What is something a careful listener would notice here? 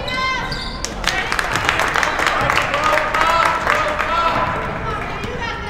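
A crowd cheers and claps in an echoing gym.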